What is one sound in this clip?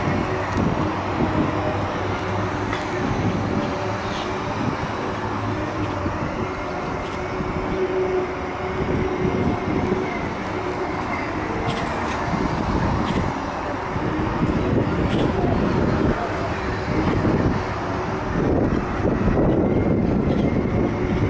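Electric scooter motors whir softly.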